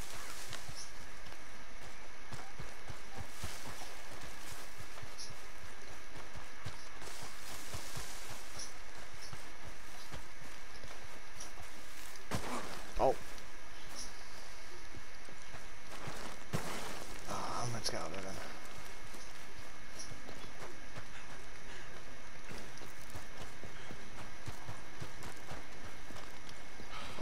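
Footsteps crunch over grass and gravel.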